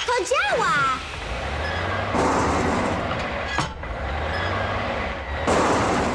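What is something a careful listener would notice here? A mechanical crane arm whirs.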